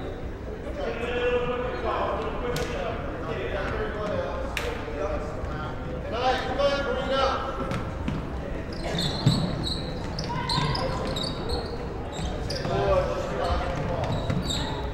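Young girls call out and shout across the court.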